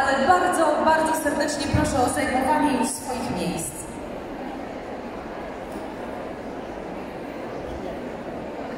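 A large crowd murmurs and chatters in an echoing hall.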